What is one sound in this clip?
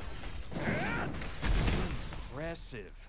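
Sword blows clash and strike in a fight.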